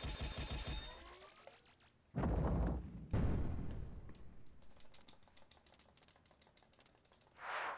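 A video game plays bright chiming music and whooshing effects.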